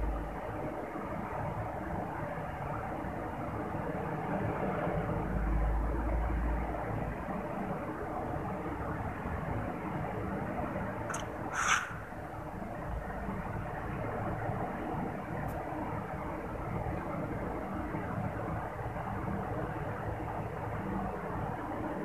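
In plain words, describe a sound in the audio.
Wind rushes past steadily during a fall through the air.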